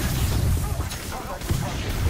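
Gunfire rings out in sharp bursts.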